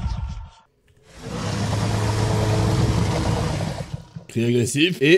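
A large creature roars loudly.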